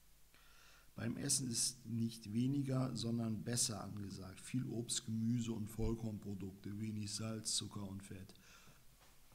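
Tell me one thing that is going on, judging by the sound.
A man reads aloud close to a microphone.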